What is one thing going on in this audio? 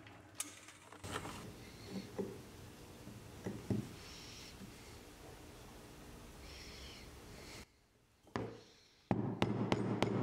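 A chisel pares wood.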